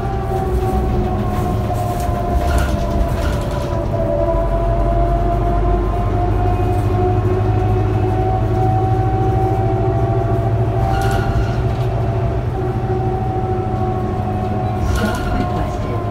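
A bus engine hums and whines steadily while driving.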